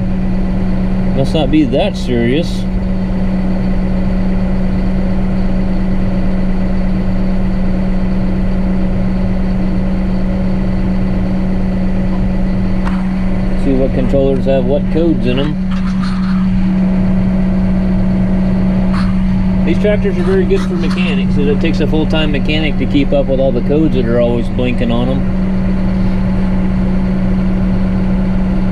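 A tractor engine hums steadily from inside the cab.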